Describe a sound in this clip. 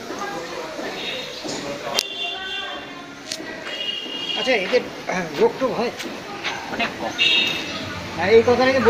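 Chickens cluck and squawk.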